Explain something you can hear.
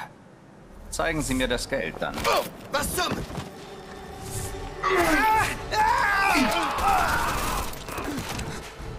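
Men shout and grunt in a scuffle.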